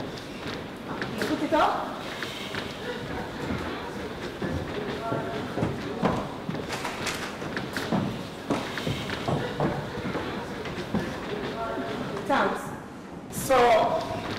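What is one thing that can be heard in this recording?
A young woman speaks sharply.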